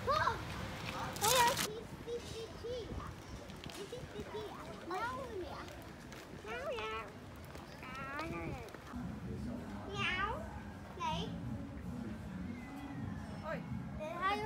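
Young children talk and squeal excitedly nearby.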